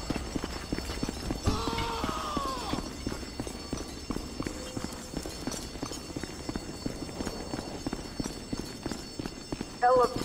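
Heavy boots run quickly across a hard floor.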